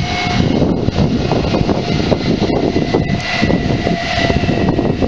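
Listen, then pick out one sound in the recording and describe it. A train's wheels squeal steadily against the rails.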